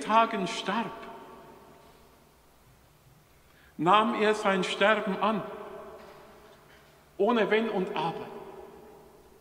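A middle-aged man chants into a microphone in a large echoing hall, with pauses between phrases.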